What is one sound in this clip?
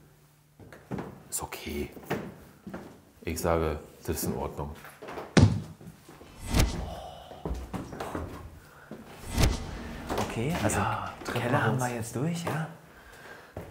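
Footsteps scuff and thud on stone stairs, in an echoing stairwell.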